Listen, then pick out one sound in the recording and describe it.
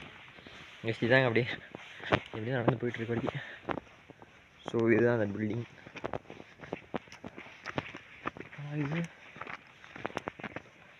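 Footsteps crunch on a dry gravel path.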